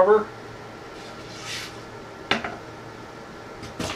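A wooden panel slides and scrapes against wood.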